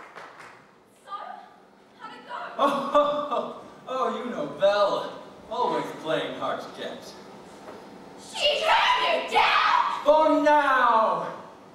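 A young man speaks theatrically and with animation in a large hall.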